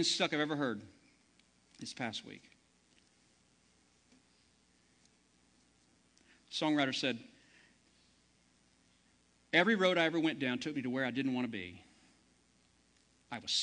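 A man speaks with emphasis through a microphone in a large room, pausing between phrases.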